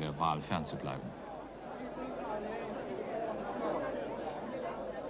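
A crowd murmurs and cheers in the background.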